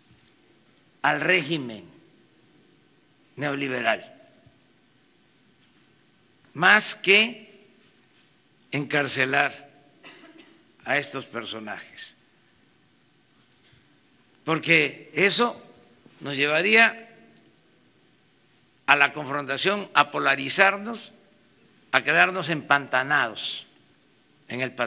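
An elderly man speaks into a microphone in short, measured phrases with long pauses.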